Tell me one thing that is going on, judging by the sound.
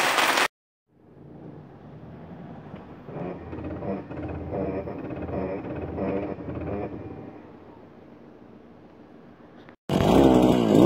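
A car engine hums while driving.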